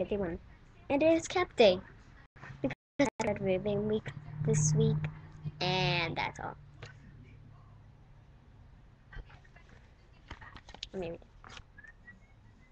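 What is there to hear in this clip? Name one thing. A young girl talks with animation close to a webcam microphone.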